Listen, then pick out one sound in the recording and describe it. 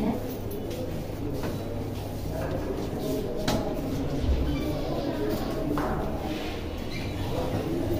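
A man handles a padlock on a door, with light metallic clicks.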